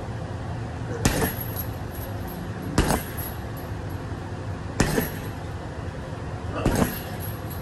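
Gloved punches thump hard against a heavy punching bag.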